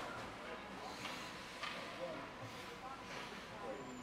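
Hockey sticks clack against the ice and puck in a large echoing hall.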